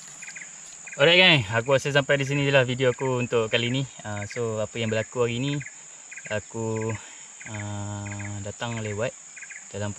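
A young man talks close up, with animation.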